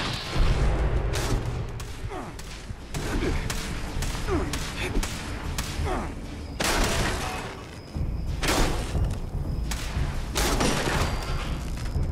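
A robot's jet thrusters roar with a low rumble.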